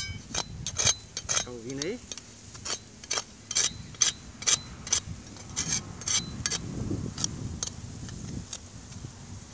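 A small trowel scrapes and digs into dry sand.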